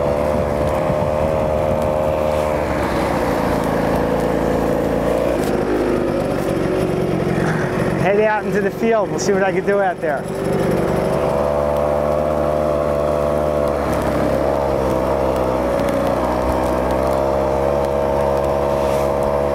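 A small motor whines steadily.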